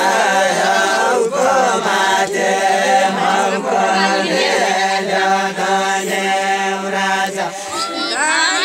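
A group of men sing together in a slow, steady chant close by.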